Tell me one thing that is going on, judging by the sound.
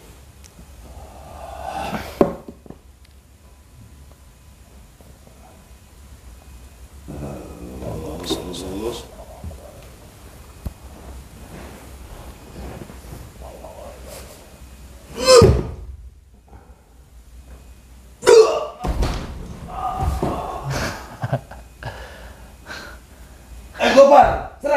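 An elderly man speaks and chants with animation close by.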